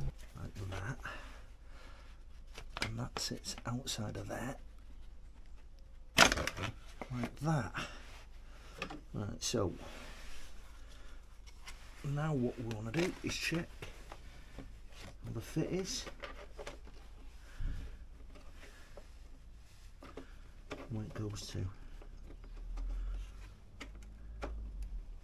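Metal tools clink and click against a motorcycle's parts.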